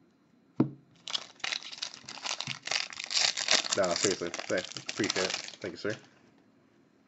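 A foil wrapper crinkles and tears as it is torn open.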